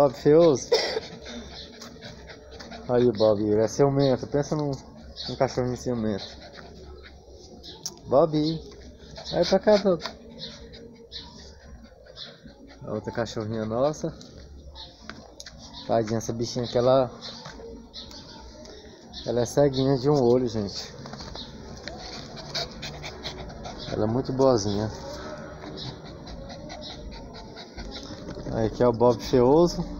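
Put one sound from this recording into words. A small dog barks.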